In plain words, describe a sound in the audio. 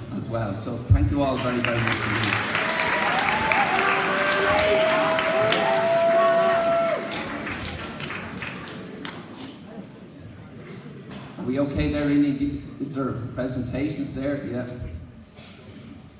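An elderly man speaks into a microphone, heard over loudspeakers in a large echoing hall.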